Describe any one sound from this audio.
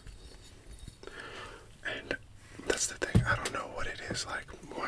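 A young man speaks softly close to a microphone.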